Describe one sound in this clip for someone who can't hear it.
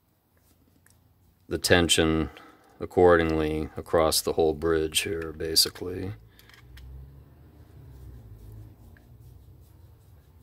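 A screwdriver turns a small screw in metal with faint scraping clicks.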